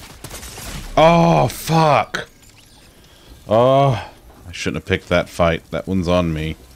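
A man speaks loudly and with animation into a close microphone, drawing out his words.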